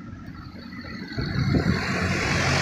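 A van approaches along the road with a low engine rumble.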